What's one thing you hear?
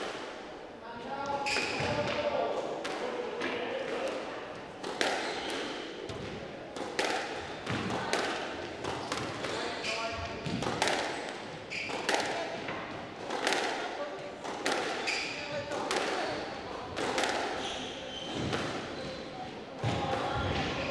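A squash ball smacks sharply off a racket and the walls of an echoing court.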